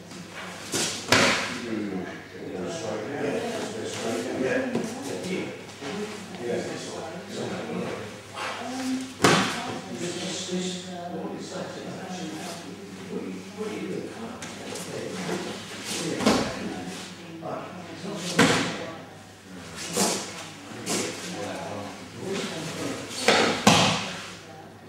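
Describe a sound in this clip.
A body thuds onto a mat in an echoing room.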